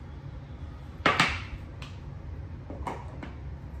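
Plastic containers clack down on a glass tabletop.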